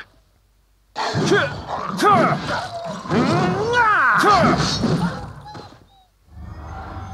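A sword swings and strikes with a loud whoosh.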